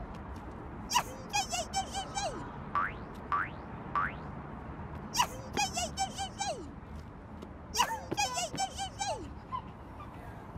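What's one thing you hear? A toddler squeals excitedly.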